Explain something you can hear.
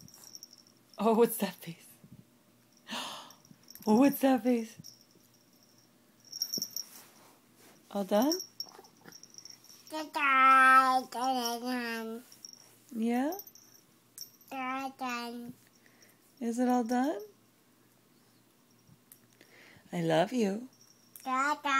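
A toddler babbles and coos up close.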